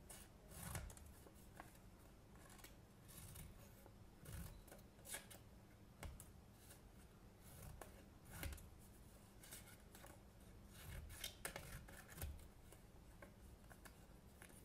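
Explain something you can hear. Scissors snip through paper in short crisp cuts.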